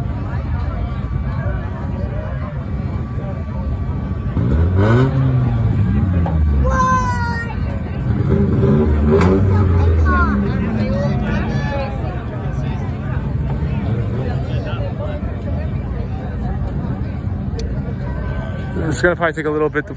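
Race car engines roar and rev around a track.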